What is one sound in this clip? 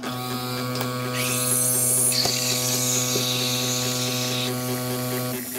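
A coffee machine steams milk with a loud hiss.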